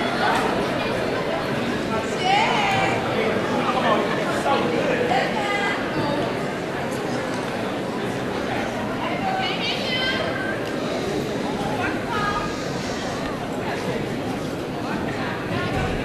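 A young woman speaks loudly to the group.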